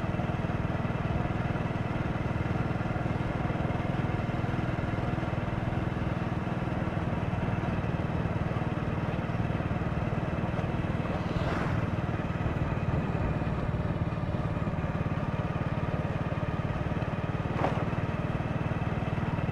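A motorbike engine hums steadily up close as it rides along a road.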